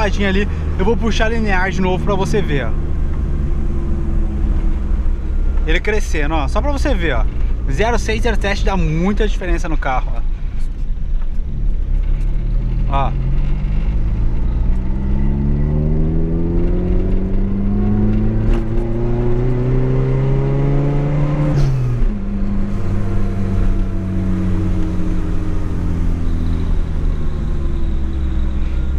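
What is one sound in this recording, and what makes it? A car engine drones steadily, heard from inside the car.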